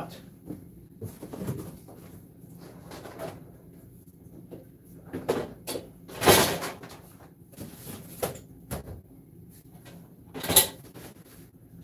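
Objects knock and clatter close by.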